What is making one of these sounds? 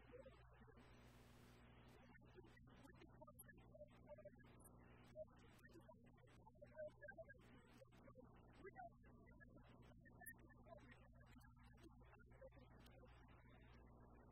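A man speaks steadily to an audience in a large, echoing room.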